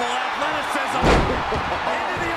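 A body slams hard onto a wrestling ring mat.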